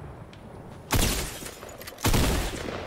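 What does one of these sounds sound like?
A gun fires in sharp, loud bursts.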